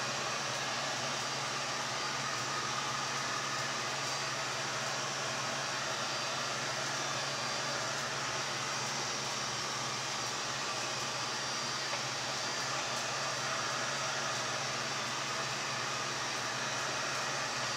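A heat gun blows with a steady, loud whirring roar.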